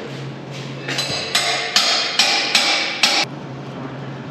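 An angle grinder whines loudly against metal.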